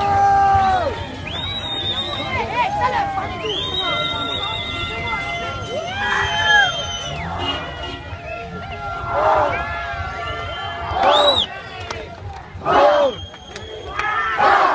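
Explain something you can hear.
A large crowd of men shouts and chants loudly outdoors.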